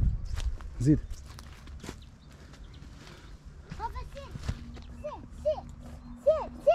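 Footsteps scuff along a dirt path.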